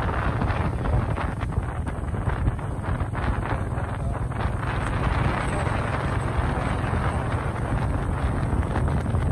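Wind buffets the microphone loudly.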